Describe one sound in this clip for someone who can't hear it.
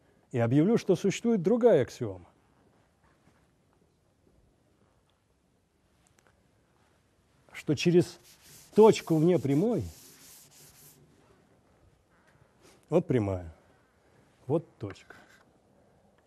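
An elderly man lectures through a microphone, speaking in bursts with pauses.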